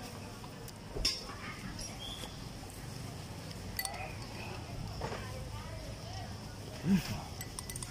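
A spoon clinks against a glass.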